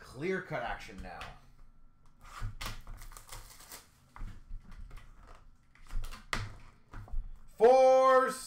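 Small cardboard boxes tap and rustle as they are handled.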